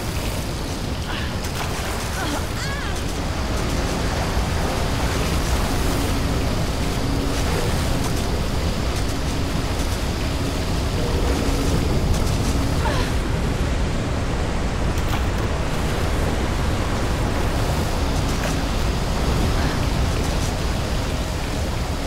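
Water rushes and sprays steadily.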